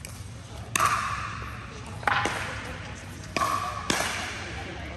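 A ball pops off a paddle and echoes.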